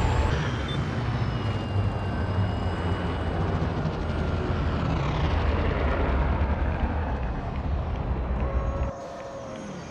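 A spaceship's engines roar with a deep rumble as it flies down and lands.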